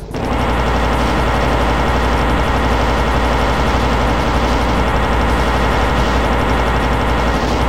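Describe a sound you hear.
A plasma gun fires rapid buzzing energy bolts.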